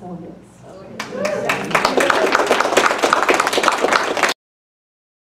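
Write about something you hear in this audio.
A middle-aged woman speaks to an audience through a microphone.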